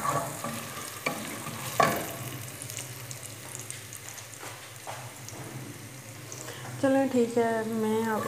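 A wooden spoon scrapes and stirs food in a metal pan.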